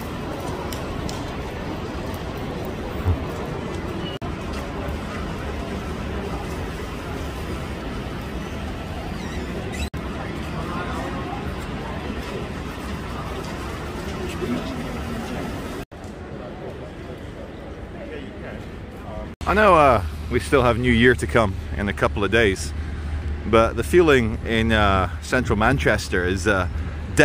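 Traffic rumbles along a wet city street.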